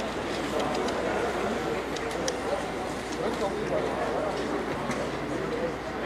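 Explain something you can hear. A model tram rolls softly along its track.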